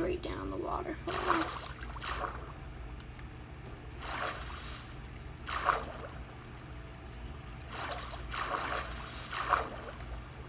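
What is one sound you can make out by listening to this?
Water splashes and sloshes in short bursts.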